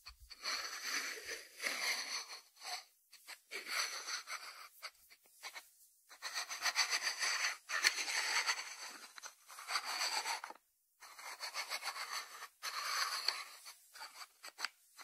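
Fingertips rub over a ceramic lid.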